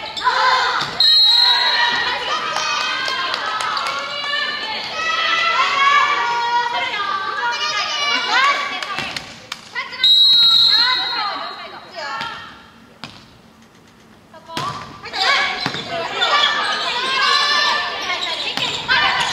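Young women shout and chant in unison in a large echoing hall.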